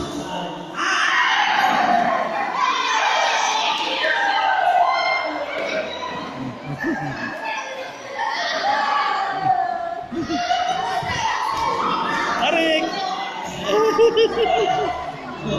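Children shout and chatter excitedly in an echoing hall.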